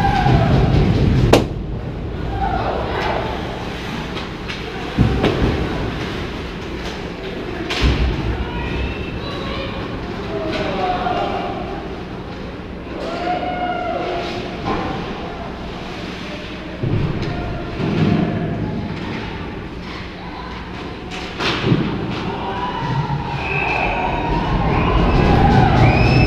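Young men shout and call out across an echoing rink.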